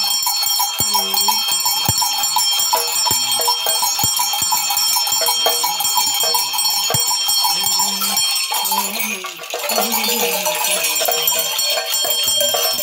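Dry seed rattles shake and clatter rapidly.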